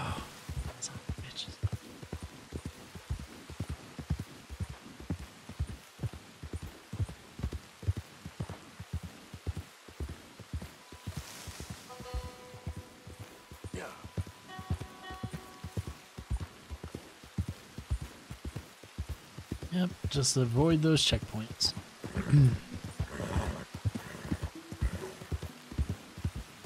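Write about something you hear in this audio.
Horse hooves thud rhythmically on soft ground.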